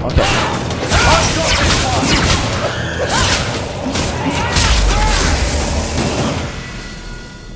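Weapons clang and clash in a fierce fight.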